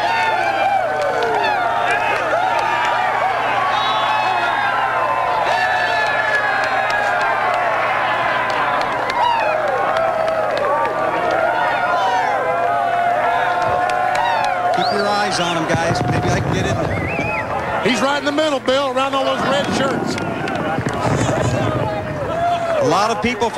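A crowd of men cheers and shouts loudly all around.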